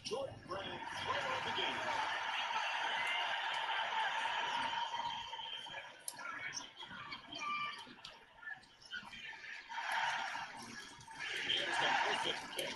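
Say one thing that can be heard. Buttons and thumbsticks click softly under thumbs.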